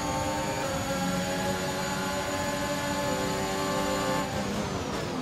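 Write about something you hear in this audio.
A Formula One car engine screams at high revs.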